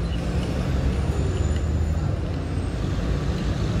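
A spoon clinks against a ceramic cup while stirring.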